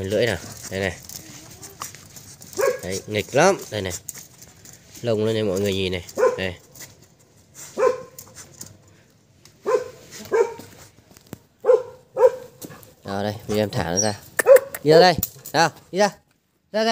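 A puppy whines and yelps close by.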